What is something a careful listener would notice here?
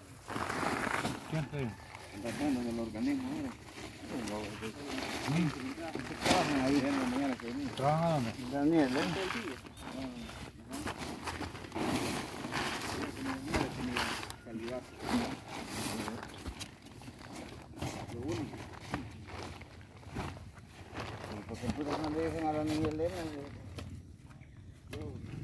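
A pitchfork scrapes and rustles through a pile of wood chips.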